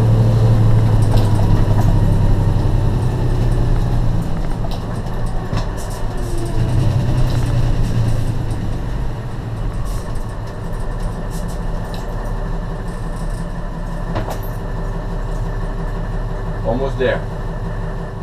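A diesel fire truck engine drones, heard from inside the cab.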